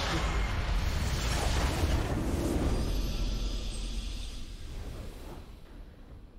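A triumphant fanfare swells.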